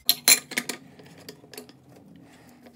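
Metal parts click and clack sharply.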